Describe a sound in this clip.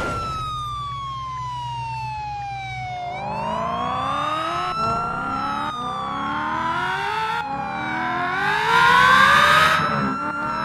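A siren wails steadily, rising and falling in pitch.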